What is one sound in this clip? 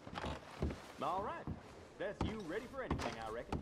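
A man speaks with animation some distance away.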